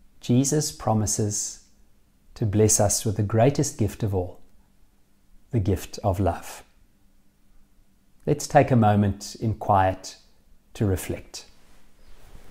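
A man speaks calmly and warmly into a close microphone, with pauses.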